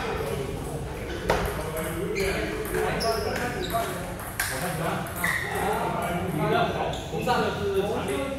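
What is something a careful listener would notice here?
A table tennis ball clicks back and forth off paddles and a table in a large hall.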